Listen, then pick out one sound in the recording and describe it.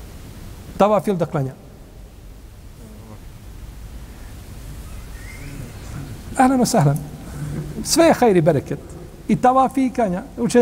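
An older man speaks calmly into a nearby microphone, with pauses.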